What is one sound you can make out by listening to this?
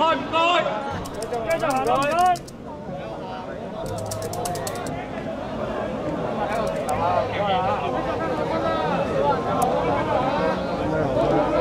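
A crowd chatters and shouts outdoors.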